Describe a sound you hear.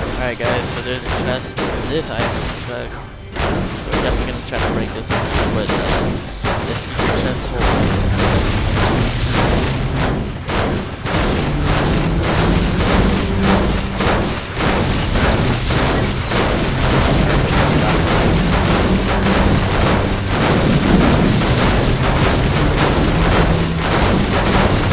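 A pickaxe strikes rubble with repeated sharp knocks.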